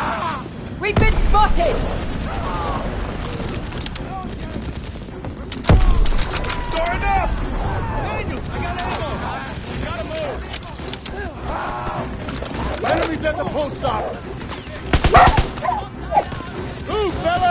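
Gunfire cracks in short, loud bursts.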